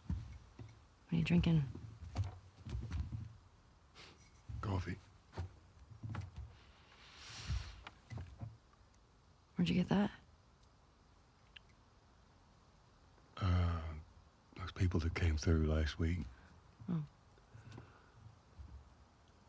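A young woman speaks calmly and quietly nearby.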